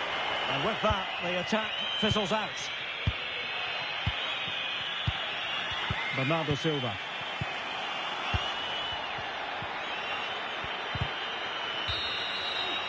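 A football is kicked with dull thuds again and again.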